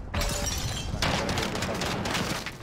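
A loud explosion bursts close by with crackling, hissing debris.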